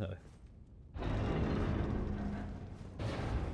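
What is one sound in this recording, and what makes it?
A heavy door grinds open.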